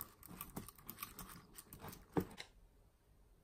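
A wire whisk clinks and scrapes against a glass bowl.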